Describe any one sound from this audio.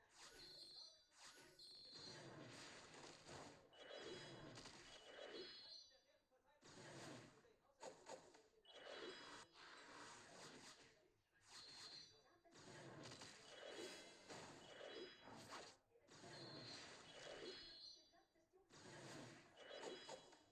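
Game sounds of magic blasts and chimes ring out during a battle.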